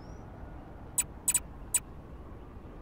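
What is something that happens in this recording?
Short, sharp clicks tick three times in quick succession.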